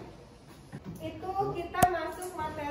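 A young woman speaks clearly to a class.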